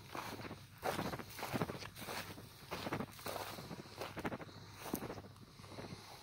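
Footsteps crunch on dry ground and grass.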